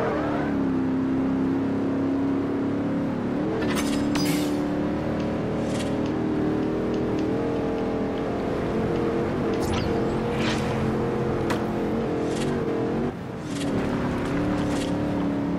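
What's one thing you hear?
A car engine roars steadily at high revs.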